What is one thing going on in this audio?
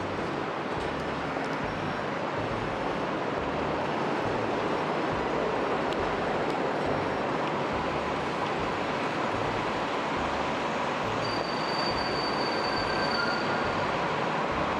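Traffic rumbles steadily along a busy city street.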